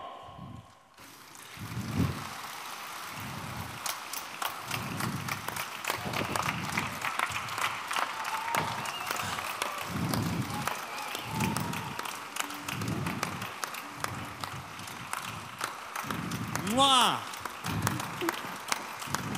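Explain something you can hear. A large crowd claps and applauds.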